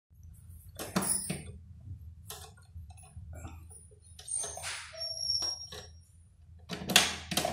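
A sewing machine clicks and clatters as it is handled.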